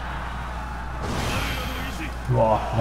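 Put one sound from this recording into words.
A loud magical blast whooshes and bursts.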